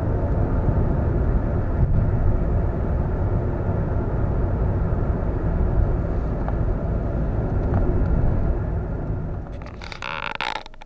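Tyres roar steadily on a road as a car drives along.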